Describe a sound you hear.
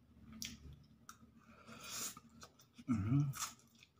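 A young man slurps noodles loudly.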